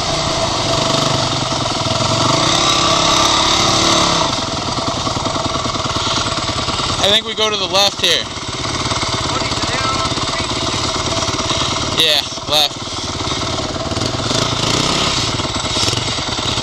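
A second dirt bike engine buzzes nearby.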